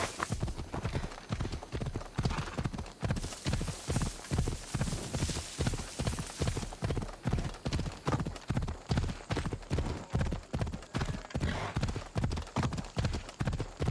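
A horse gallops with steady, rhythmic hoofbeats.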